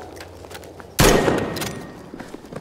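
A rifle fires a loud shot that echoes briefly.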